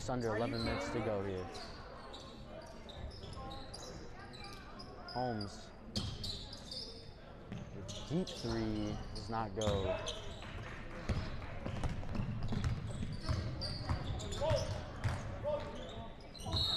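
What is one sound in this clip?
Young men shout to each other across a large echoing gym.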